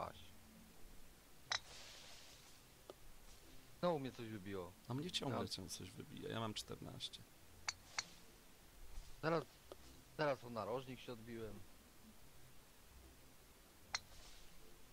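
A golf ball is struck with a soft click.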